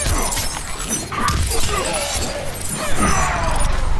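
An icy blast crackles and shatters.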